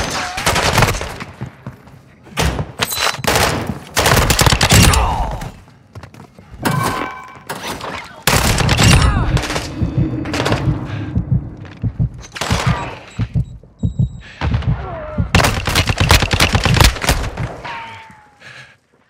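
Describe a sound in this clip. Rapid bursts of gunfire ring out loudly.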